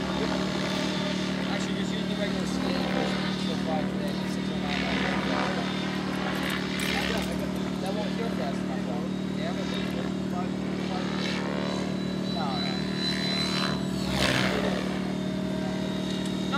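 A model helicopter's engine whines steadily overhead, with rising and falling pitch as it turns.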